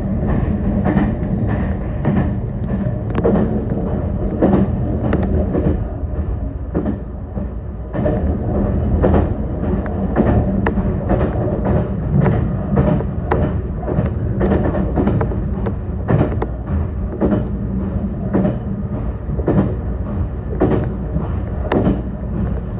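Train wheels click and clack over rail joints.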